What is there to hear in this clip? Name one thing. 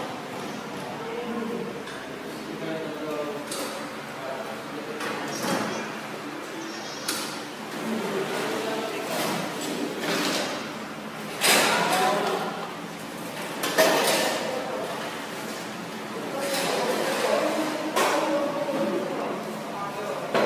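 Men talk in the background.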